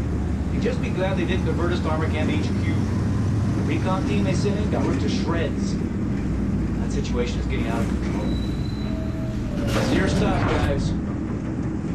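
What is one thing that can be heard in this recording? A man speaks calmly in a low voice close by.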